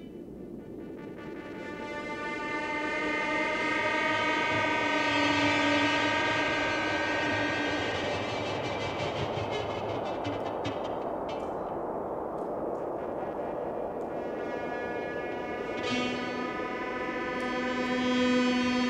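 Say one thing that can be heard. A fiddle plays a lively tune through loud speakers outdoors.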